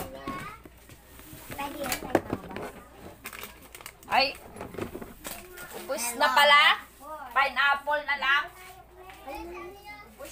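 A young girl talks in a high voice nearby.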